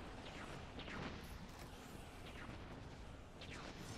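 Rifle shots fire in quick bursts, each sounding sharp and echoing.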